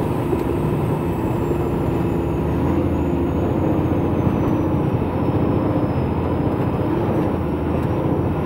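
Tyres crunch on a gravel road.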